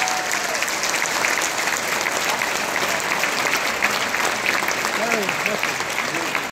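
A large audience applauds in a big echoing hall.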